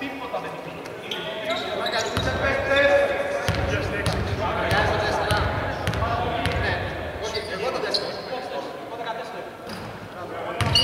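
Young men call out loudly to each other across the court.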